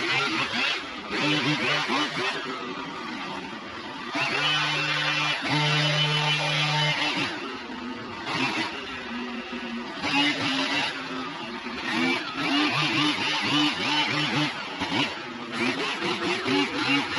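A leaf blower roars steadily close by.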